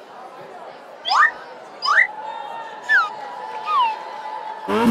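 Quick cartoon zips rise and fall in pitch.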